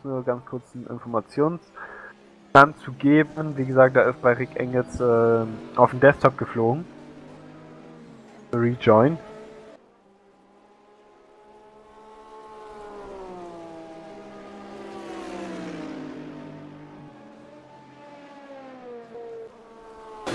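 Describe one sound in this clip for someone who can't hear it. Racing car engines roar and whine, rising and falling in pitch as the cars speed through corners.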